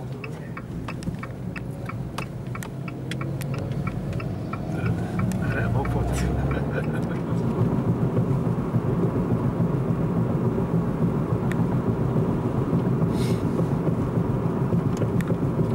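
A car engine hums from inside the car and builds as the car speeds up.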